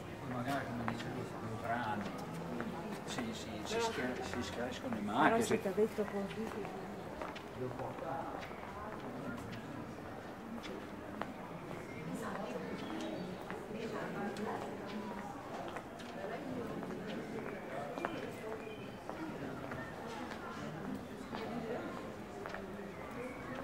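Voices of passersby murmur along an outdoor street.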